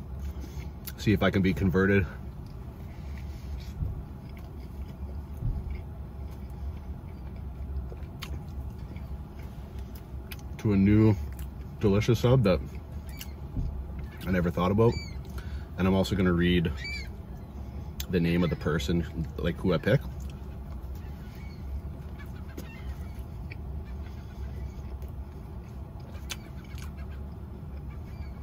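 A man chews food with his mouth closed.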